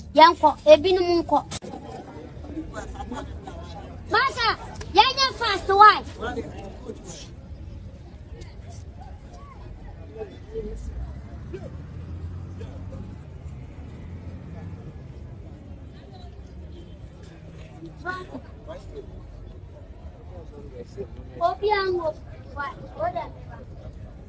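A young boy shouts excitedly close by.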